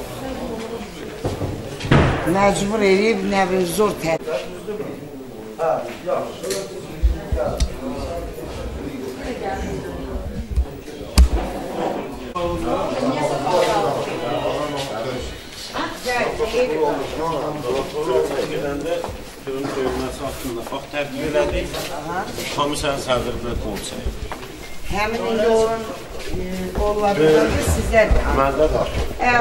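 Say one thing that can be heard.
Several men talk loudly over one another.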